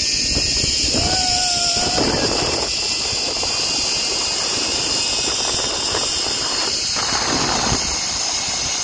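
A woman speaks and exclaims cheerfully close to the microphone.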